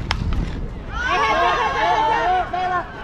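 Players cheer loudly after the hit.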